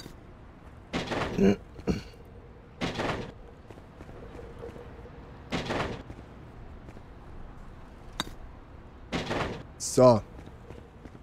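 A metal bar swings and smashes into wood with sharp cracks.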